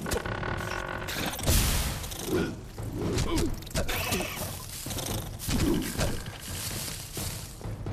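Magic fire bursts and roars in loud whooshes.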